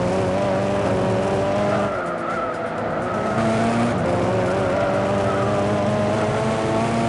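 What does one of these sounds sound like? A racing car engine roars at high revs, dipping briefly as gears change.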